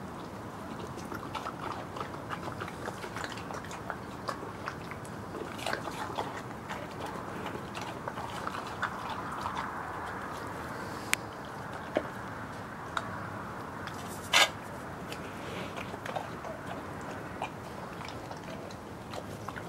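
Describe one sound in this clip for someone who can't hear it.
A bear chews and munches food with wet smacking sounds close by.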